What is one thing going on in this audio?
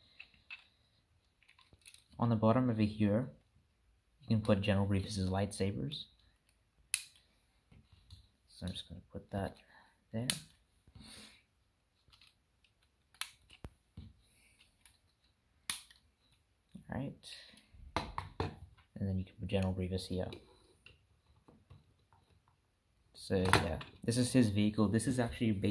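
Plastic toy bricks click and rattle as they are handled.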